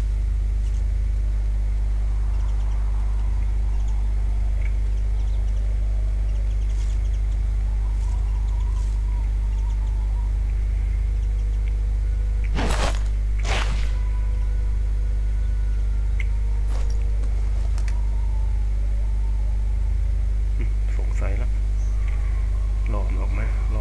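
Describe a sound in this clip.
Footsteps scuff softly on stone paving.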